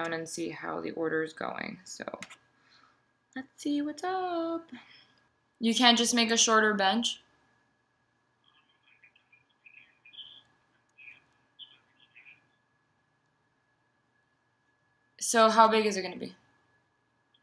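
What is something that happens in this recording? A young woman speaks close by, calmly, with long pauses.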